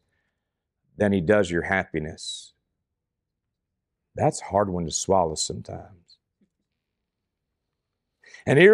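A man speaks calmly and clearly into a microphone in a quiet room, pausing between phrases.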